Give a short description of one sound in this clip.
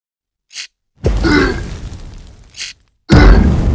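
Molten lava gushes and spills down.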